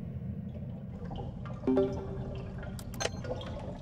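Short game beeps and tones sound during a timing challenge.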